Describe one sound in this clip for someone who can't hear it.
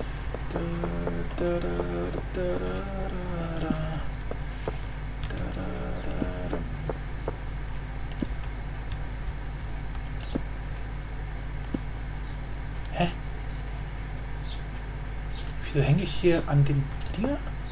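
A young man talks calmly and close to a microphone.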